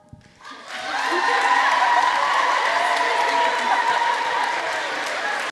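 A choir of young women sings together in a large echoing hall.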